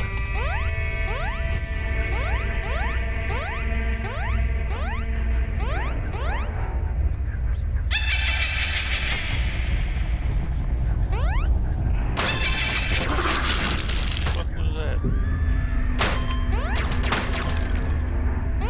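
Game music plays steadily with a deep pulsing beat.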